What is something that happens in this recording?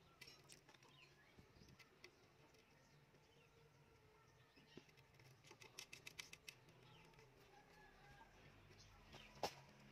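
Thin wire rattles and scrapes against a plastic pipe.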